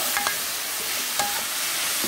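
A spatula scrapes and clatters against a pan.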